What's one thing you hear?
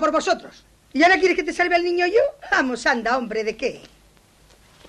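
A middle-aged woman laughs heartily.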